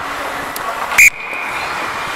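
A hockey stick smacks a puck.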